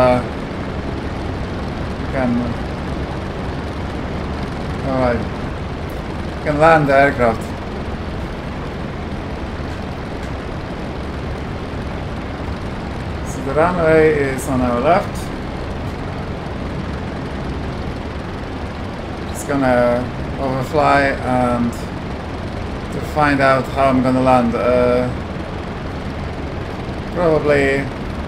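A man speaks in short bursts through a headset microphone.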